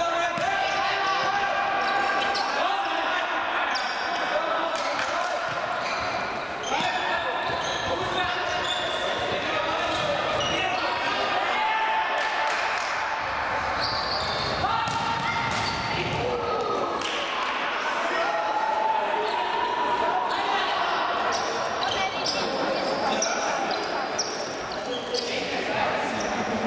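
A ball is kicked sharply on a hard indoor court.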